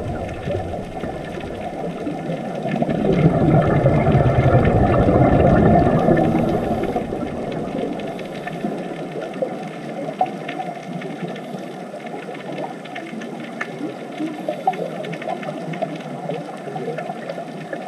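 Scuba divers' breathing bubbles gurgle and rush underwater.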